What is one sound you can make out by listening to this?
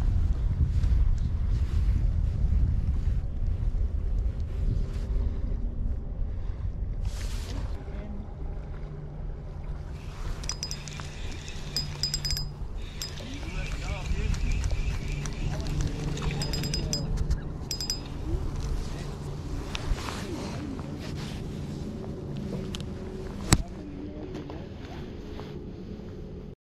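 Water laps gently against a wooden dock.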